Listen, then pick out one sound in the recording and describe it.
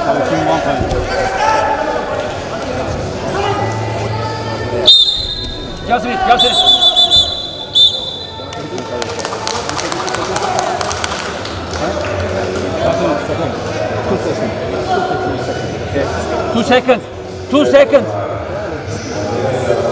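A crowd cheers and calls out in a large echoing arena.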